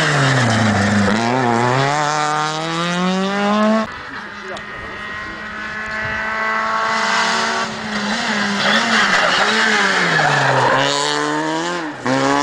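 Tyres screech on the road as a rally car takes a sharp corner.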